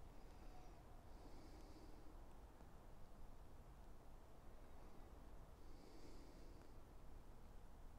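A man puffs softly on a pipe.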